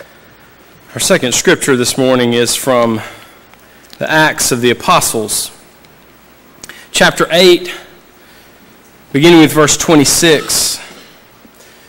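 A man speaks slowly and solemnly through a microphone in a large echoing hall.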